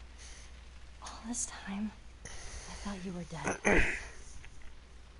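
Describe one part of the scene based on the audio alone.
A teenage girl speaks with surprise up close.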